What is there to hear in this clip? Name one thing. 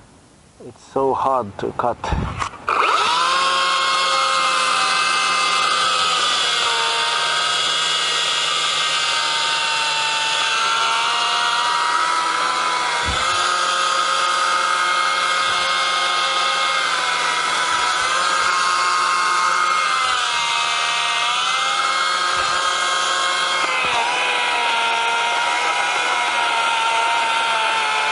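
A small petrol engine sputters to life and then runs with a steady, high drone.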